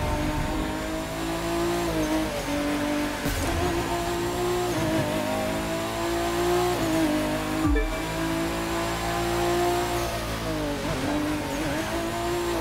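Tyres screech on a wet track through the corners.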